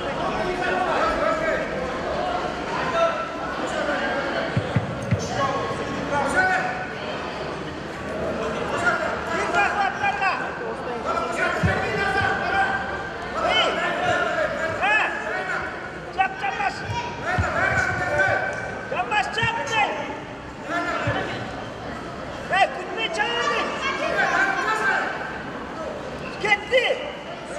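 Wrestlers' feet thud and shuffle on a mat.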